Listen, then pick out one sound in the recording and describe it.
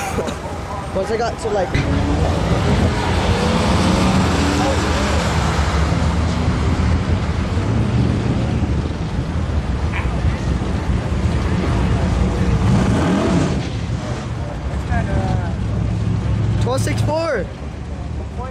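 Car engines roar loudly as cars race away.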